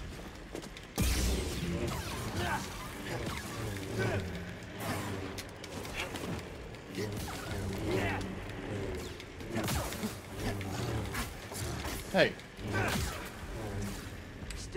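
A glowing blade hums and swooshes through the air.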